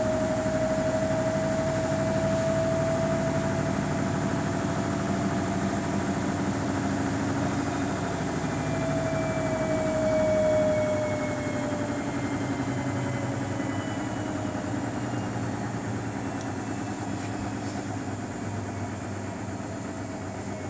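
A front-loading washing machine spins its drum at high speed with a whining motor.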